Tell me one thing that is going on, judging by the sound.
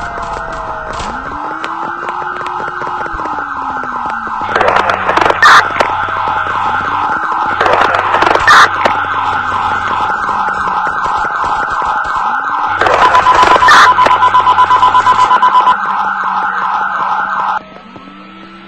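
A police siren wails in a fast, steady warble.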